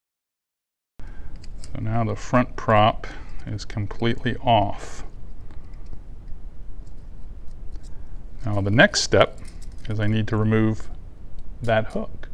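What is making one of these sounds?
Small metal fishing parts click softly between fingers.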